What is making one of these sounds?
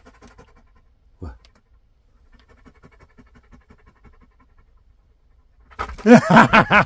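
A dog pants quickly and rhythmically close by.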